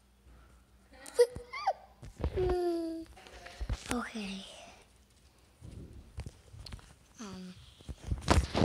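A young boy cries and whimpers close by.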